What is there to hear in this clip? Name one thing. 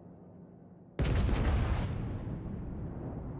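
A large explosion booms and slowly rumbles out.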